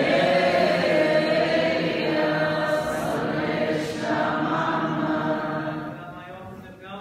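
A congregation sings together in a large echoing hall.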